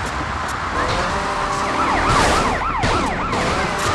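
A motorcycle crashes with a loud metallic bang.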